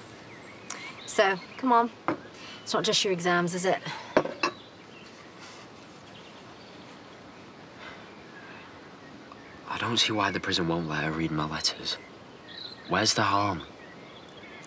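A young man talks earnestly, close by.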